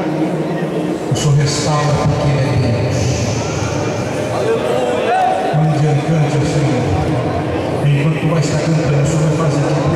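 A crowd of people murmur prayers together.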